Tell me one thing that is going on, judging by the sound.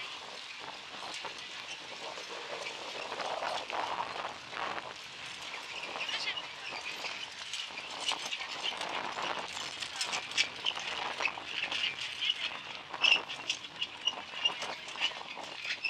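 Horses' hooves trot rhythmically on packed dirt, drawing closer.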